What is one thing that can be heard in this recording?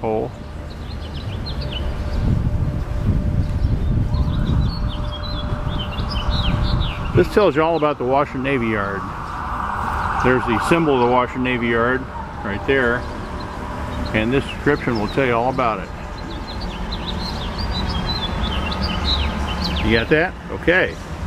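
Wind rumbles across a microphone outdoors.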